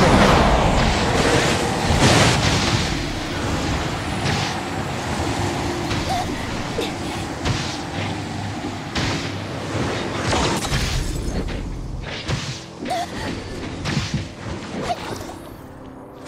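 Energy blasts crackle and zap in a fast fight.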